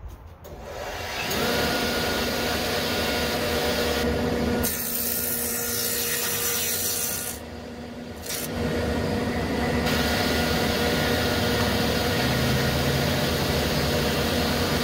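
A table saw whirs steadily.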